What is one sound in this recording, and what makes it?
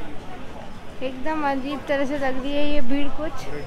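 A woman speaks loudly close by.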